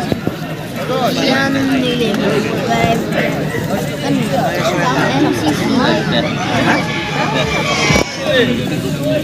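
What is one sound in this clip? A crowd of young men chatter and shout excitedly outdoors.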